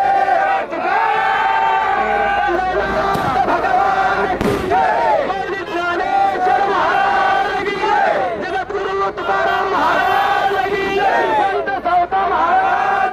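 Men sing a devotional song through loud horn loudspeakers.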